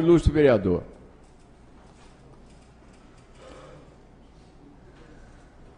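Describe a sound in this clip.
An elderly man speaks into a microphone, loudly at first and then with long pauses.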